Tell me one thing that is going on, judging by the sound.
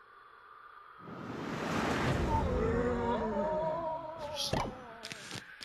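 A whooshing sweep rises and fades as the game scene moves.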